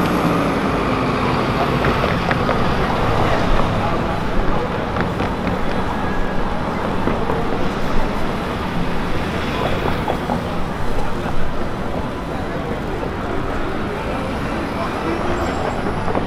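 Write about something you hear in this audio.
Vehicles drive past close by.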